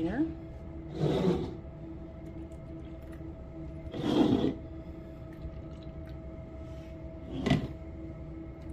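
Liquid pours and splashes into a plastic cup in short bursts.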